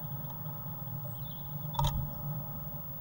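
A small bird taps and scrabbles at a wooden nest box.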